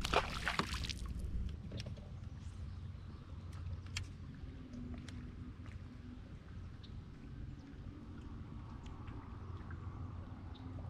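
Water laps against a boat's hull.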